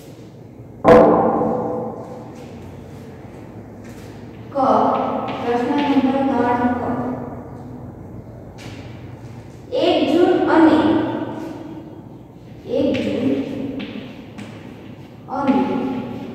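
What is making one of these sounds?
A woman speaks loudly and clearly in short phrases, with a slight echo of a room.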